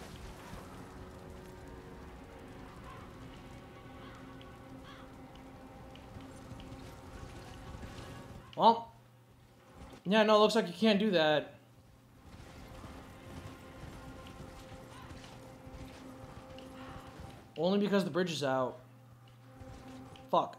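A horse gallops with hooves clattering on stone.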